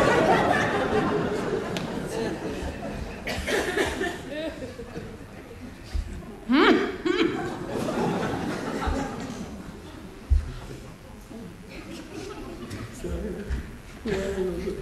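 A young woman speaks with feeling on a stage.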